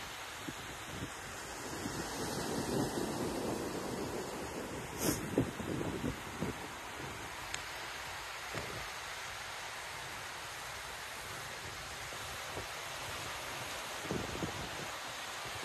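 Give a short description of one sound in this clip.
Small waves wash softly onto a sandy shore.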